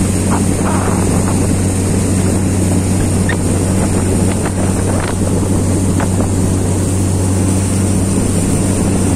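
A boat's outboard motor drones steadily.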